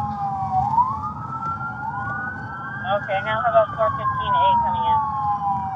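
A car engine hums low as the car drives fast.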